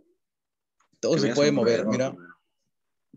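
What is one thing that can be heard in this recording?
Another young man answers over an online call.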